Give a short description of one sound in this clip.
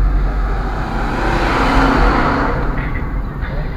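A truck rushes past close by in the other direction.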